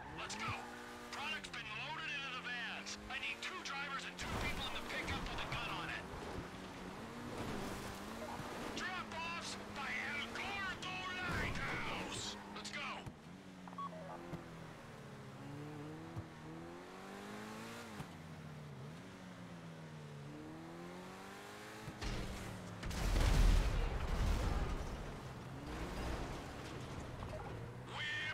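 A sports car engine revs and roars, rising and falling in pitch as it shifts gears.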